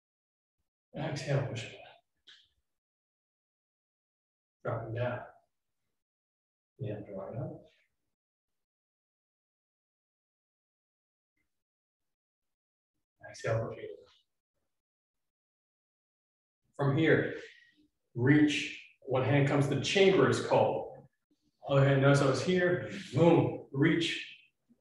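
A young man speaks nearby in short bursts, calmly giving instructions.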